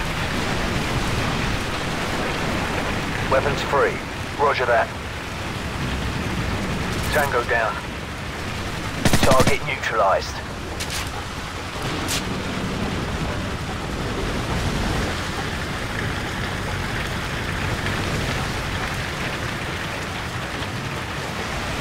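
Heavy rain pours down steadily outdoors in wind.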